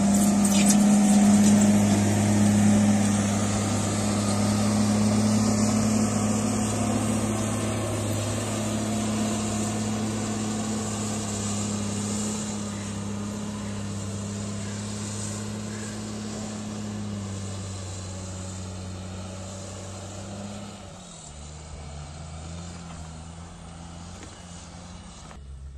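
A diesel engine rumbles steadily close by and gradually grows more distant.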